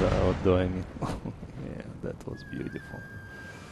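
Musket volleys crackle across a battlefield.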